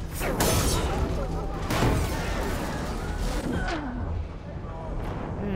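A huge machine roars and crashes with deep rumbling.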